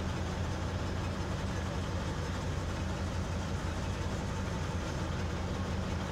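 A heavy truck engine rumbles steadily at low revs.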